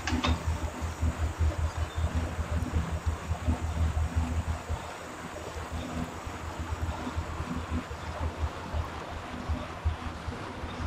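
An indoor bike trainer whirs steadily.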